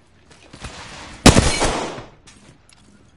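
A sudden loud burst sounds close by.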